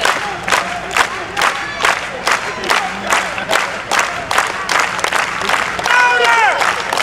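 A crowd claps along in a steady rhythm outdoors.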